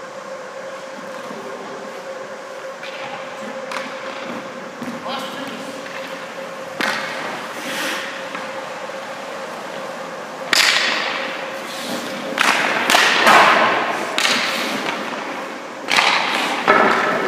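Skate blades scrape and carve across the ice in a large echoing rink.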